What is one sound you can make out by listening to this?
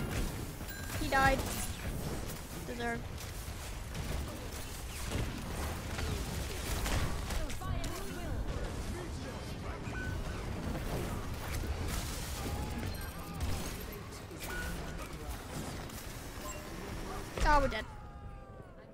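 Game gunfire and ability effects crackle and whoosh.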